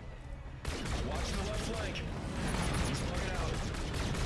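An explosion bursts with a crackling roar.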